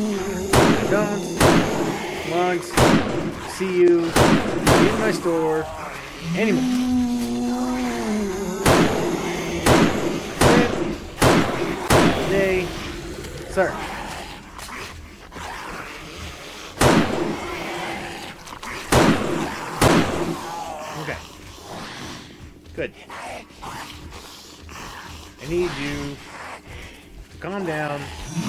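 Zombies snarl and groan close by.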